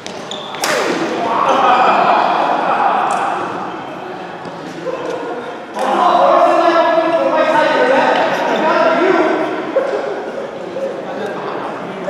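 Men talk with animation in a large echoing hall.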